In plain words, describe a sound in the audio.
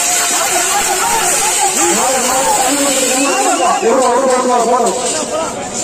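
A large crowd of young men chatter and shout loudly outdoors.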